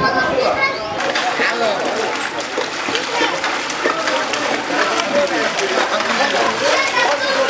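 A horse-drawn cart splashes through floodwater.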